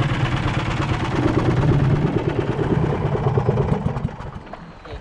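Wind and water rush loudly past a small moving boat.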